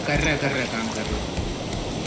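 Water sloshes as a cup is dipped into the sea.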